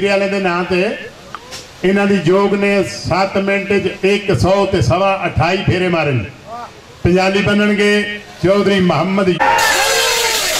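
A man calls out loudly in a drawn-out voice through a loudspeaker.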